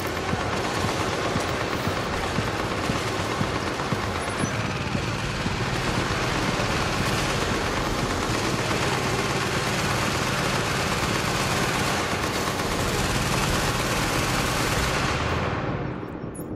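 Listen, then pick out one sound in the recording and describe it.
Gunfire crackles.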